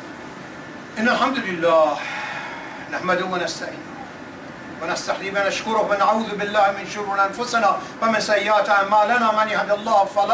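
An elderly man speaks steadily, reading out.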